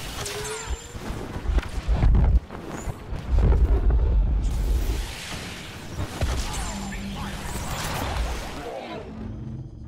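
Lightsabers hum and clash with sharp crackles.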